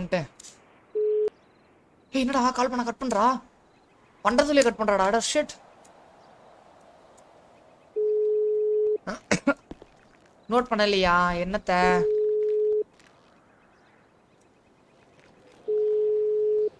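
A phone beeps with a steady electronic tone.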